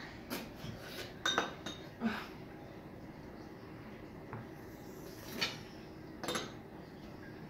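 A spoon clinks against a mug.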